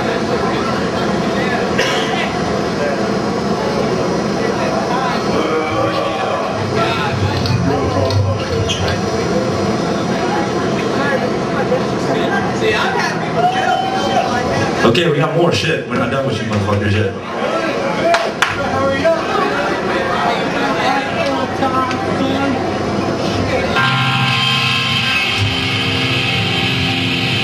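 A metal band plays loud distorted guitars and drums in an echoing hall.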